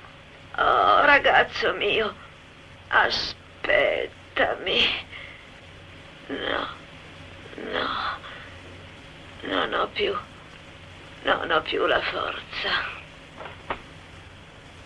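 An elderly man speaks weakly and faintly.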